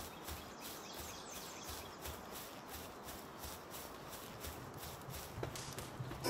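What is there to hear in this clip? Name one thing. Footsteps patter quickly through grass.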